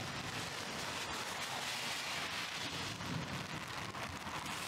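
A car drives past on a wet road with a hiss of tyres.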